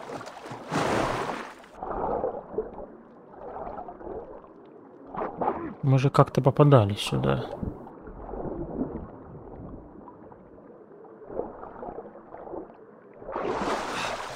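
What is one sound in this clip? Muffled, low rumbling sounds of moving underwater.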